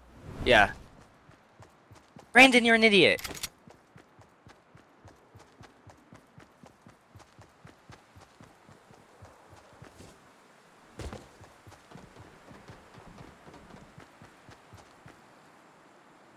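Quick footsteps patter along steadily.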